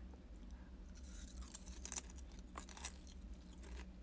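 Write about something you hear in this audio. A young woman chews food quietly.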